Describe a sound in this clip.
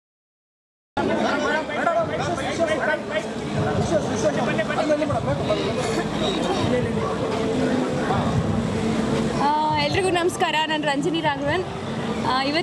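A crowd of people chatters noisily nearby.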